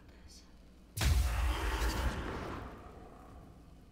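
A magic cloud bursts with a loud rushing whoosh.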